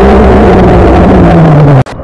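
Air bubbles burst and gurgle underwater.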